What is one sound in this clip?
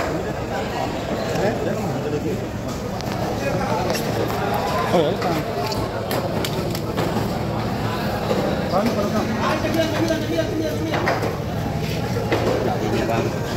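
A knife chops through fish with dull thuds.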